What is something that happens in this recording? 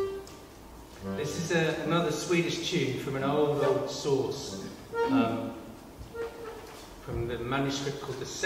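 A hurdy-gurdy drones and plays a melody.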